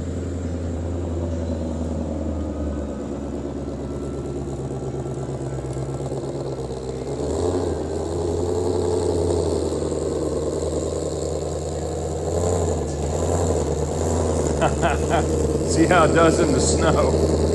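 Tyres spin and slide on snow.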